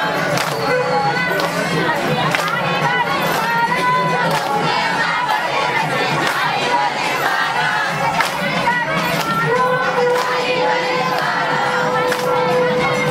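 Hands clap together in a steady rhythm.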